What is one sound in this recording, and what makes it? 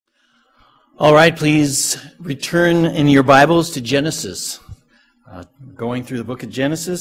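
A middle-aged man speaks calmly into a microphone in a room with some echo.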